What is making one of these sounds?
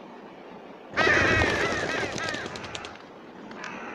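Birds call loudly overhead.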